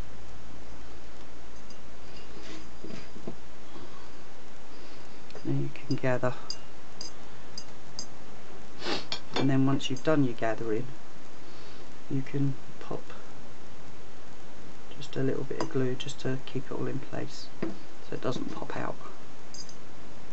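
Fabric lace rustles softly as hands handle it.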